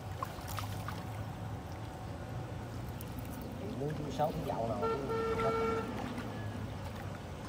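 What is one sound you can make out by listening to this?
Water drips and trickles as a fishing net is pulled up from a river.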